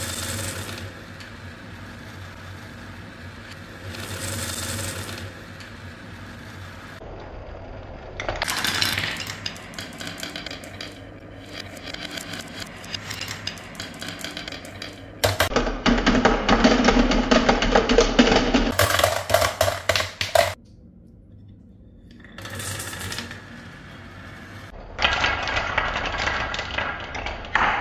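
Glass marbles clack against each other.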